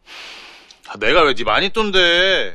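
A young man asks something in a low, calm voice close by.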